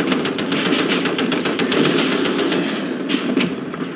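A heavy engine rumbles steadily.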